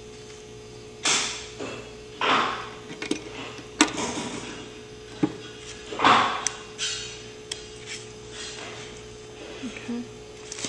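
A film splicer's levers click and clack as hands work it.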